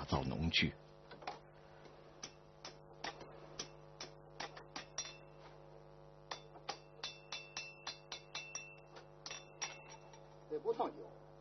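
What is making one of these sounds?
A hammer strikes hot metal repeatedly with sharp ringing clanks.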